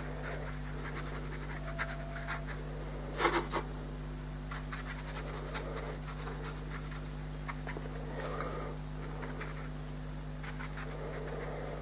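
A paintbrush dabs softly on paper.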